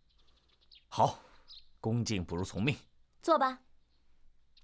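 A man speaks nearby with amusement.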